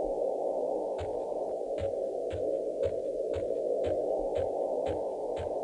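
Footsteps thud at a quick, even pace on soft ground.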